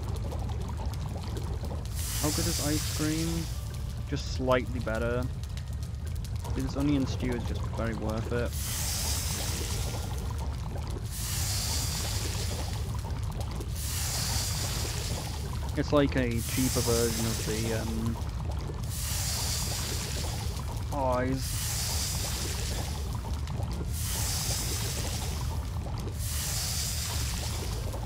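A fire crackles and hisses.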